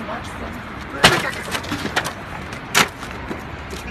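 A foot thuds hard against a machine.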